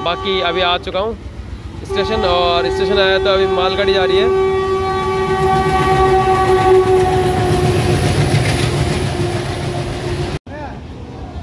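A diesel locomotive blares its horn loudly.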